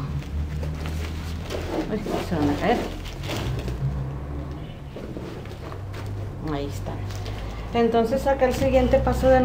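Dry corn husks rustle as hands handle them.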